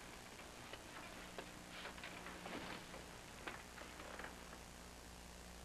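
Fabric rustles softly as a person shifts in an armchair.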